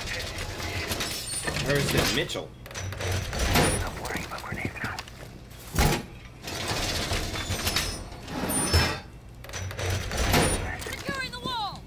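A metal wall panel clanks and rattles as it is braced.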